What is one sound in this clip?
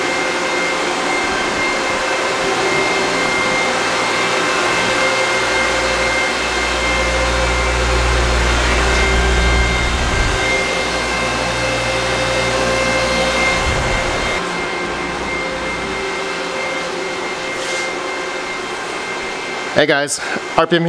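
Cooling fans of machines whir and hum loudly and steadily.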